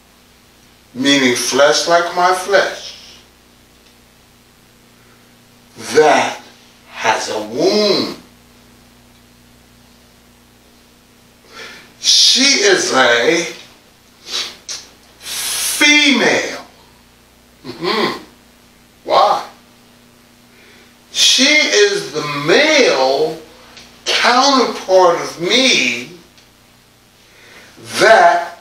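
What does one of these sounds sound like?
A middle-aged man preaches with feeling, speaking in bursts with pauses between them.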